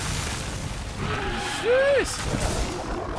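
A large creature lets out a loud roar.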